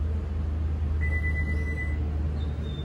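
A car gives a short, steady beep.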